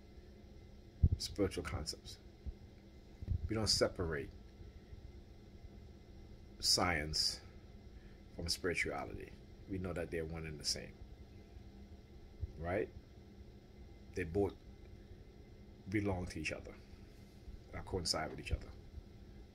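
A middle-aged man speaks calmly and close to the microphone, in short phrases with pauses.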